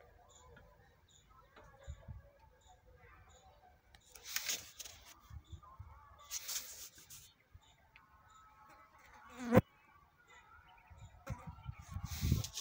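Plastic parts scrape and rustle as they are handled.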